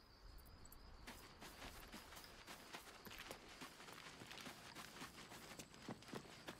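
Footsteps crunch on gravel and stone.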